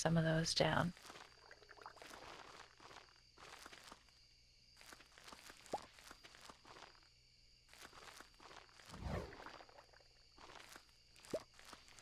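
Short soft game sound effects pop again and again as crops are picked.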